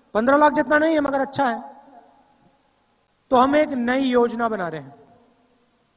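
A man speaks forcefully into a microphone over a loudspeaker.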